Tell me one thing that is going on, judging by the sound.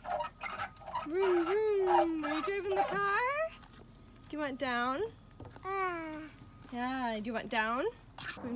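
A toddler babbles and squeals in a high voice up close.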